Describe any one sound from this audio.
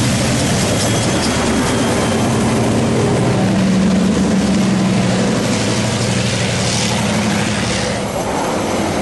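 A locomotive engine rumbles loudly close by.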